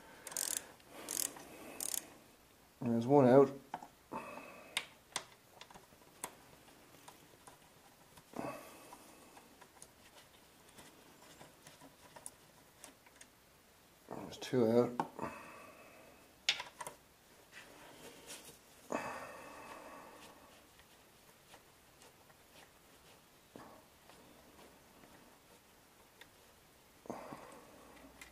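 Metal tools clink and knock close by.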